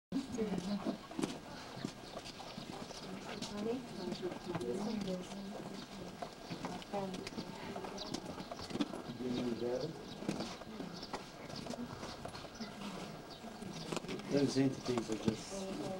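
Several adults talk nearby in a crowd.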